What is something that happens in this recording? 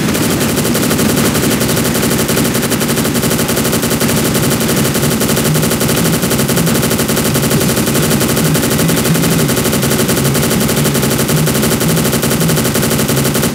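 An automatic rifle fires rapid, continuous bursts.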